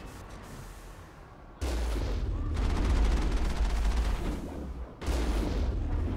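Explosions boom and scatter debris.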